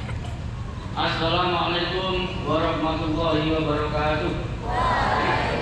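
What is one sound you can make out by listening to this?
A young man calls out loudly through a loudspeaker outdoors.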